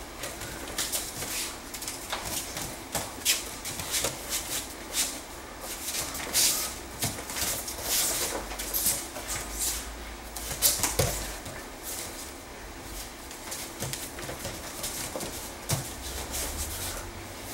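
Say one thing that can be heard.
Bare feet shuffle and squeak on a padded mat.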